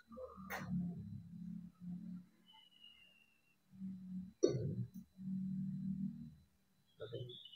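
Metal parts clink and scrape as a brake caliper is handled.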